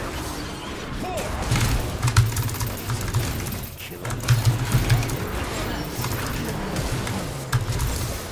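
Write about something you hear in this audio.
Game spells and hits crackle and whoosh in quick bursts.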